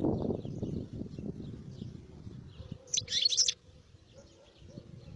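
A small bird twitters close by, with a short loud burst of song.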